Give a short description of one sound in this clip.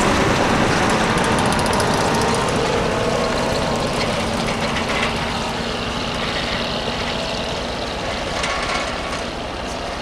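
A snowcat's diesel engine rumbles as it drives away and slowly fades.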